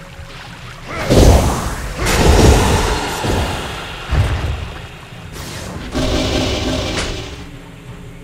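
Magic spells whoosh and burst in loud bursts.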